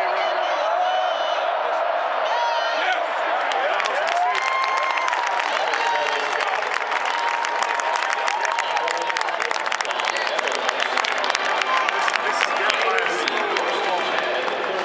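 A large stadium crowd roars and cheers loudly throughout.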